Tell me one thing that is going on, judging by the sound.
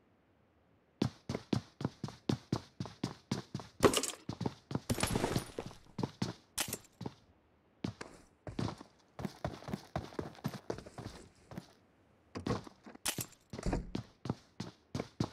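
Footsteps thud quickly on hard floors and ground.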